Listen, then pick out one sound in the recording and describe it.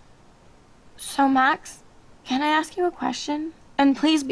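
A young woman speaks softly and hesitantly, close by.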